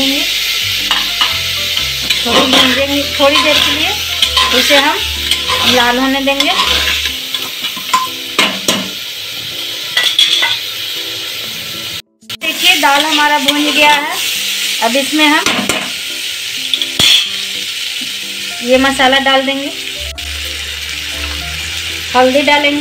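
Food sizzles in a hot pot.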